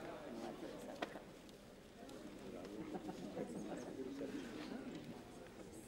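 People murmur and chatter in a crowded hall.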